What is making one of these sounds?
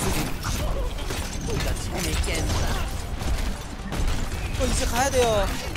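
Rapid game gunfire bursts and explodes.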